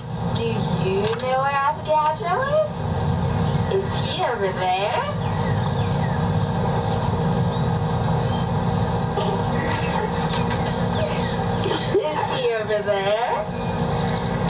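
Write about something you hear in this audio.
A young girl talks loudly and with animation close by.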